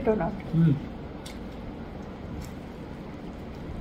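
Food rustles as fingers pull it apart.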